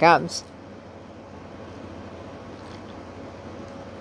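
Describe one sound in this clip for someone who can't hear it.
A woman sips and gulps a drink from a can.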